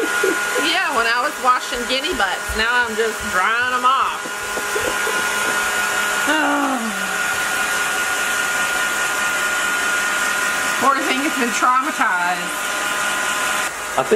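A hair dryer blows steadily close by.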